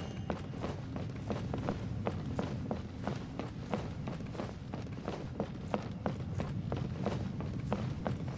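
Footsteps thud quickly on hollow wooden planks.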